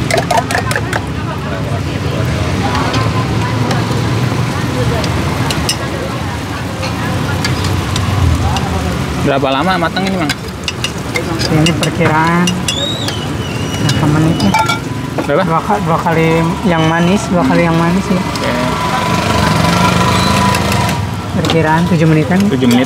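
Batter sizzles on a hot griddle.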